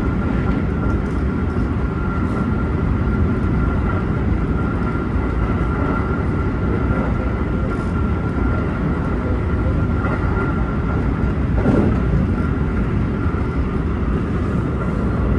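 An electric motor whines steadily.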